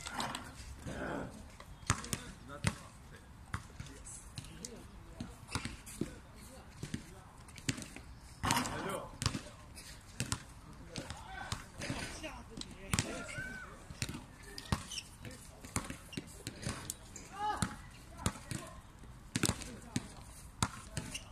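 A basketball bounces on an outdoor court.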